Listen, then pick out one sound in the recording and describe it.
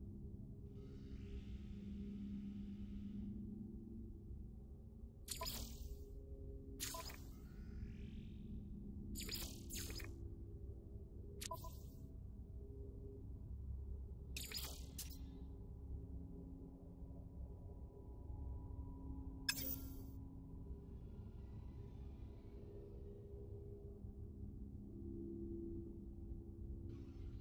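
A low electronic drone hums steadily.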